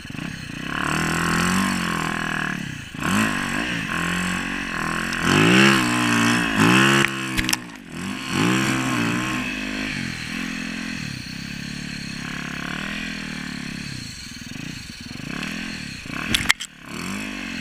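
Snow and branches brush and thump against the dirt bike.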